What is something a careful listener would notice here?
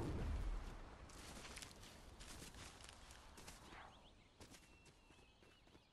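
Footsteps rustle through tall grass and over dirt.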